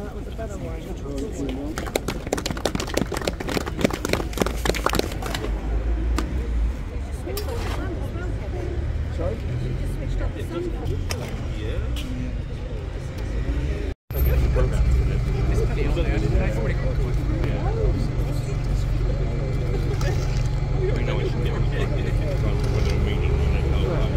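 A crowd of men and women murmurs and chats nearby outdoors.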